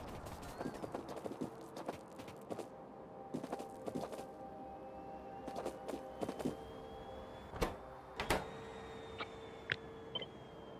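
Short clicks and clacks sound again and again.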